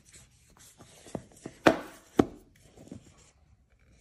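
A cardboard lid slides off a box with a soft rush of air.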